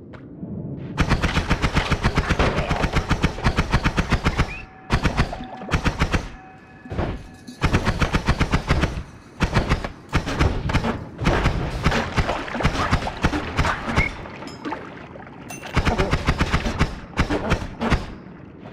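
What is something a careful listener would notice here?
A laser gun fires in rapid, crackling bursts.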